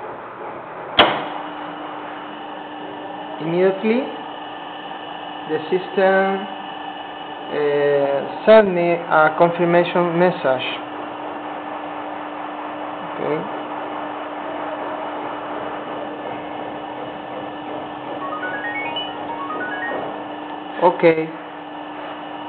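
An electric motor spins a fan with a steady hum.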